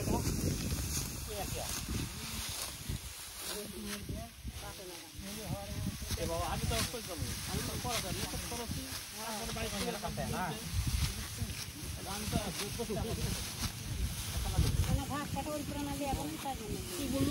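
Dry rice stalks rustle and crackle as they are pulled and gathered by hand.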